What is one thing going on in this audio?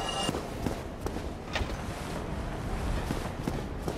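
An iron gate creaks open.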